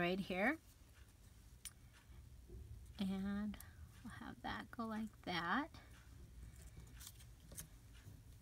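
Paper rustles softly as hands handle it.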